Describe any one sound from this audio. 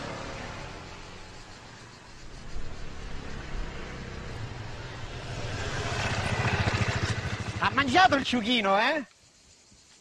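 A motorcycle engine rumbles, growing louder as it approaches.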